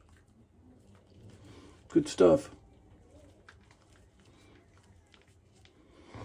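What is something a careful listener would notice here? A man rubs shaving lather onto his face with a soft squishing sound.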